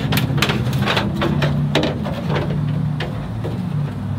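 Metal parts knock and clank.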